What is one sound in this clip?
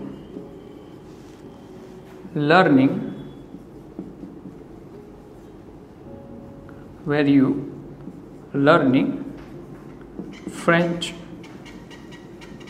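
A marker scratches faintly on a whiteboard.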